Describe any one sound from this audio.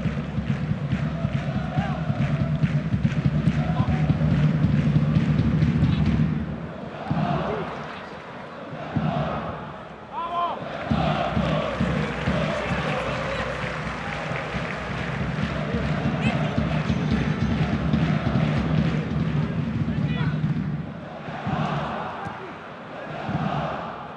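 A large stadium crowd chants and cheers loudly outdoors.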